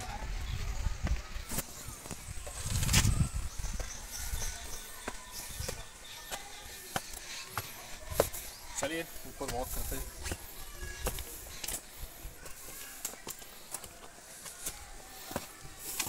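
Footsteps scuff on stone steps.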